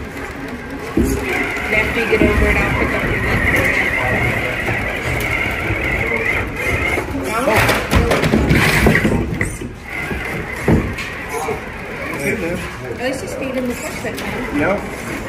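Plastic wheels scrape and knock on rocks.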